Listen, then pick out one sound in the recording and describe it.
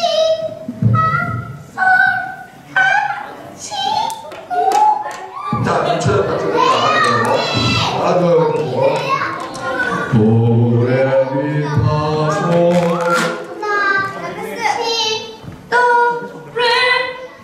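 Young girls speak one at a time into a microphone over loudspeakers in a large echoing hall.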